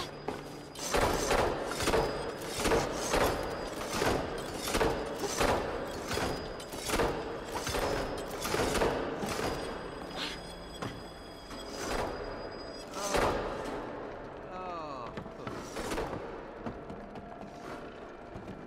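Large clockwork gears clank and tick in a steady rhythm.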